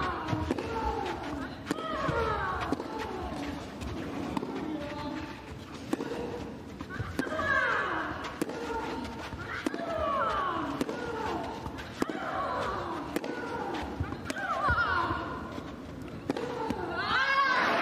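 Tennis balls are struck back and forth with sharp pops in a steady rally.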